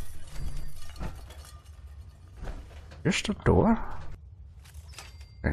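Heavy metal footsteps thud slowly on a hard floor.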